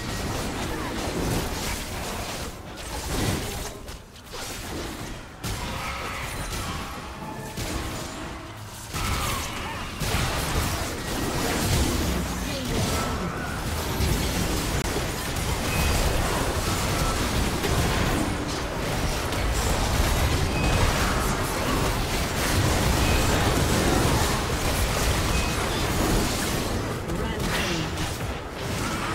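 Video game combat sounds of spells, weapon hits and bursts clash.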